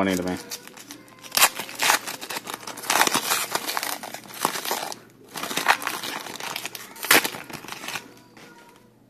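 A plastic wrapper crinkles and rustles between fingers.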